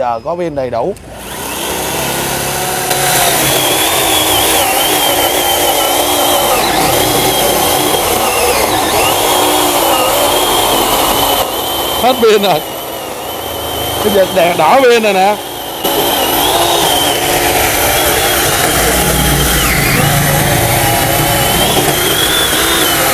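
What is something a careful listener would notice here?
An electric chainsaw whines steadily and dips in pitch as it bites into a log.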